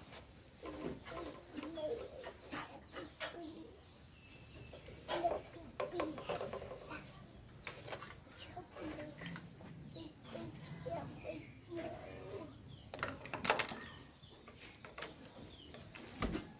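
A small monkey knocks and drags plastic toys across a wooden floor.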